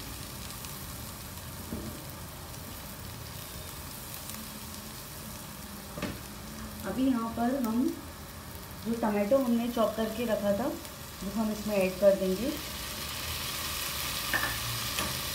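Onions sizzle in a hot pan.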